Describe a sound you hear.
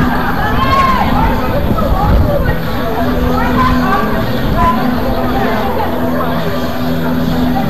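Young men shout to one another at a distance outdoors.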